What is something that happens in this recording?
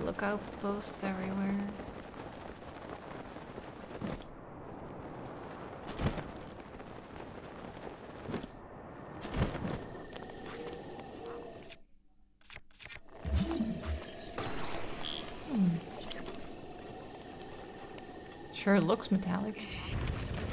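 A young woman talks casually into a close microphone.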